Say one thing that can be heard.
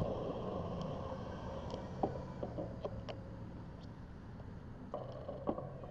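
A car drives past nearby.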